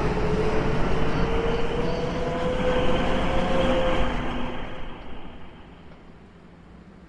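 A train rushes past close by and fades into the distance.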